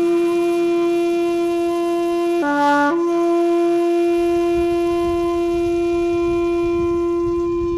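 A bamboo flute plays a long, steady held note that briefly dips lower.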